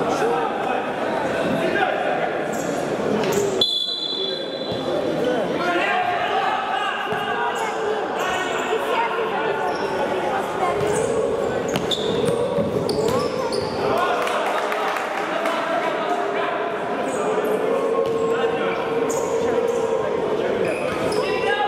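Men shout in an echoing sports hall.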